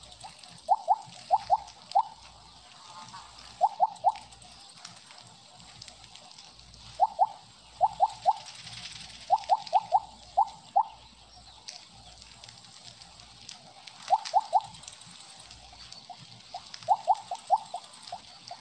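Short bright electronic blips sound in quick bursts as a game snake gobbles up pellets.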